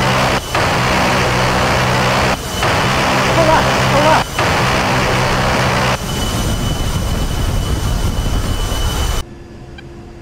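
A twin-engine turbofan jet roars low overhead.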